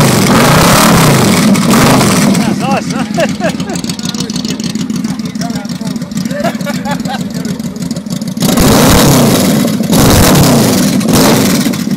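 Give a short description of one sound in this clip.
A motorcycle engine revs loudly and then drops back.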